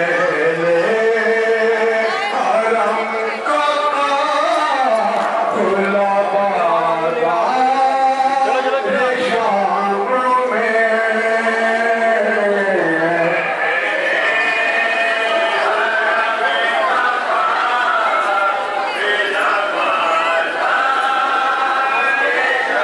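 A crowd chants a slow, mournful song in unison.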